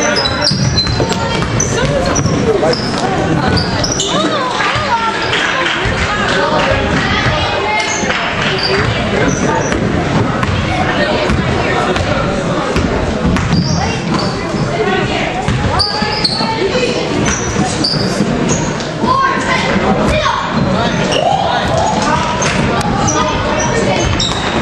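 A crowd chatters and cheers in an echoing gym.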